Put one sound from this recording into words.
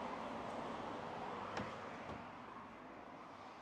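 A shop door swings open.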